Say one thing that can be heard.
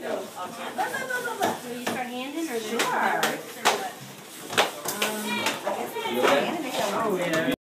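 Several women talk and laugh with animation close by.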